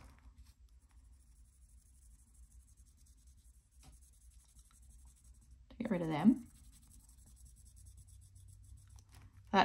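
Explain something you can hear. A felt pen scratches softly on paper.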